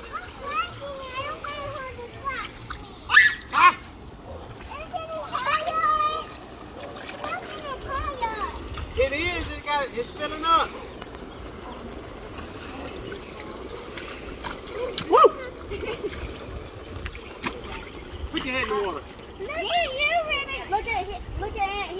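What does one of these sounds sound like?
Young girls talk and squeal excitedly nearby.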